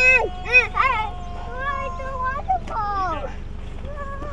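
A young child talks in a high voice, close by.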